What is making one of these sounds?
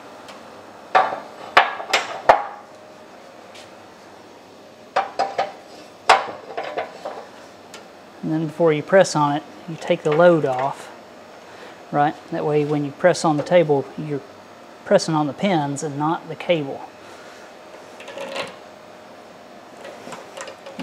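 Metal tools clank and knock against a press.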